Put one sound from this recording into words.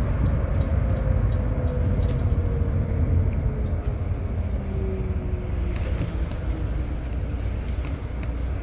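Tyres roll on the road with a steady hum.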